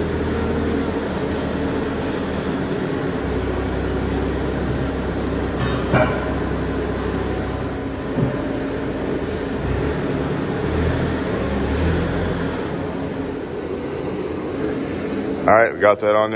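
A forklift engine hums steadily nearby.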